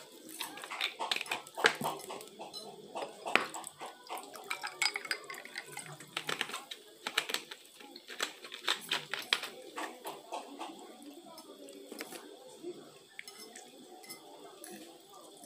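A woman chews and slurps food close by.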